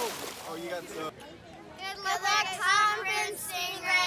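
Young girls cheer and shout excitedly together, close by outdoors.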